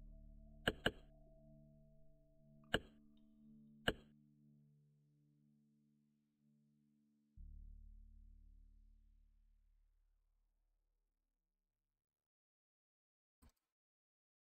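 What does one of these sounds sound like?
Sharp clicks sound now and then.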